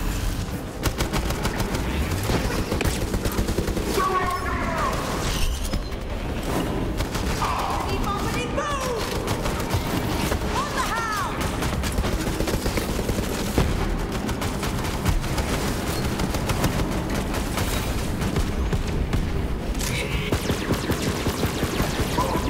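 Explosions boom and crackle with fire.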